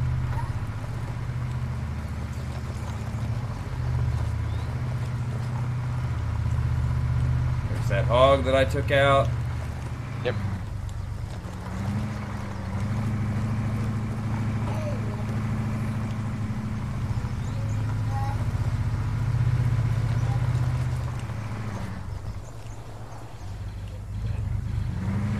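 A buggy's engine hums steadily as it drives.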